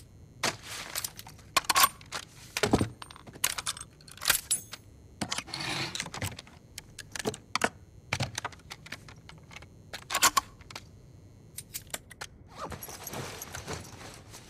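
Metal parts of a rifle click and clack as they are handled.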